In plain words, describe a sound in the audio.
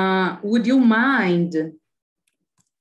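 A young woman speaks calmly through a microphone, as if on an online call.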